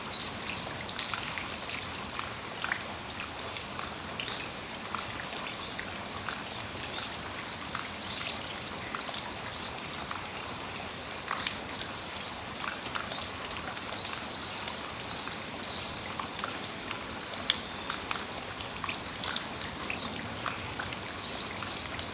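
Raindrops patter and drip onto a metal awning.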